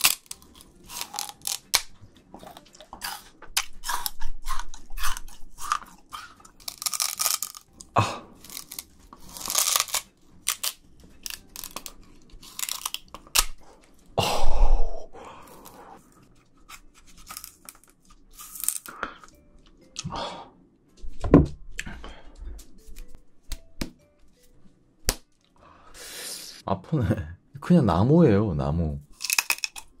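A young man bites and crunches on fibrous stalks close to a microphone.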